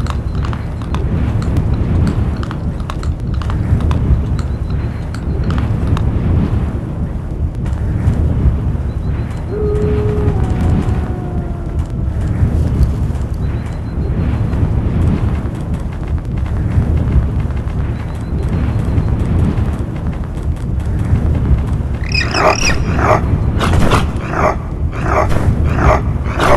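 Wind blows steadily and roars low.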